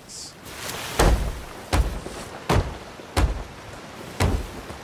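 A hammer knocks on wood in quick, heavy blows.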